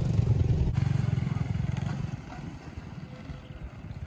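A motorbike engine hums as the motorbike rides away.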